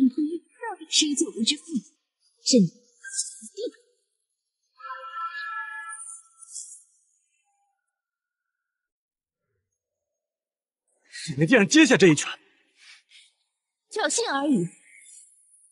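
A young woman speaks mockingly, close by.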